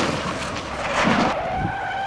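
Cardboard boxes thump as a car knocks into them.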